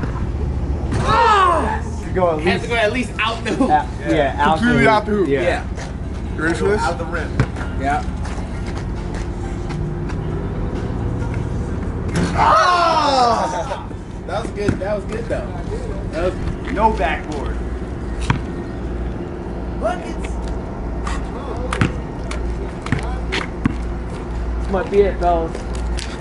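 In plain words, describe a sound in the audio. Young men talk and shout with excitement outdoors.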